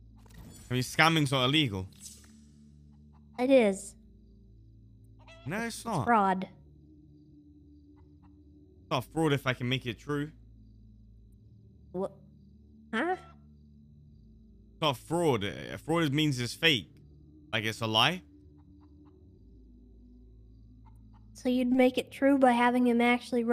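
A young woman talks, heard through a microphone.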